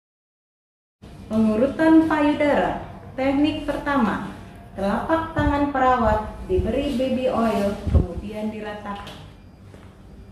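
A woman speaks calmly and clearly, as if explaining.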